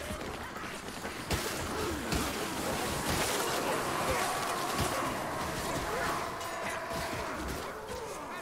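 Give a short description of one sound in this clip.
Blades hack and slash into bodies.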